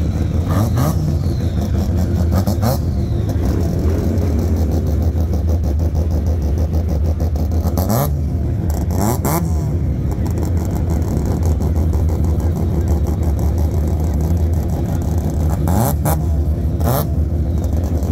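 A car engine revs sharply several times.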